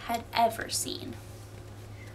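A young woman speaks briefly close by.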